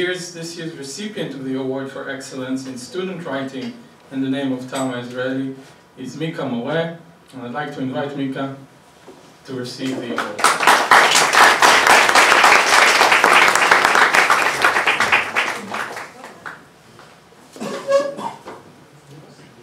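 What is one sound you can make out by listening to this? A man speaks calmly into a microphone in an echoing room.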